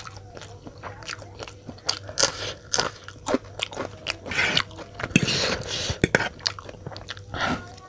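A man crunches on a green chili close to a microphone.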